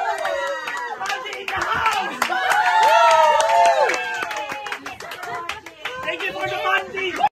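Hands clap in a quick rhythm.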